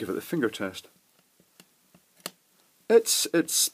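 A small plug clicks into a socket.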